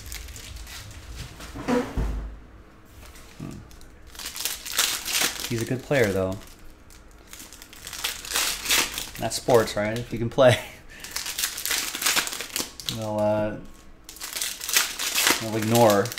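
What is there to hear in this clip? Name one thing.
A foil card pack crinkles and tears as hands open it.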